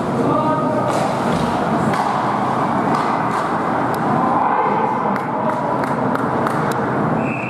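Hockey sticks clack against a puck and against each other.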